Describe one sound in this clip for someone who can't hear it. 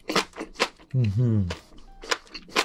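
A young man hums briefly with his mouth full.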